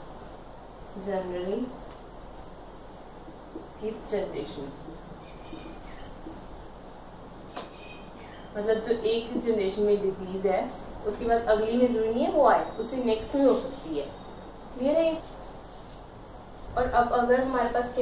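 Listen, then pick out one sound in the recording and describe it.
A young woman speaks calmly, as if explaining, close by.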